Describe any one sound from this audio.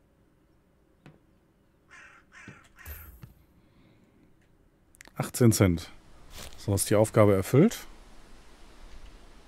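A cardboard box full of bottles and cans is set down with a dull thud.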